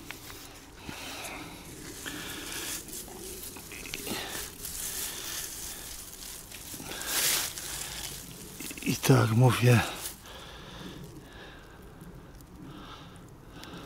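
A landing net rustles through grass.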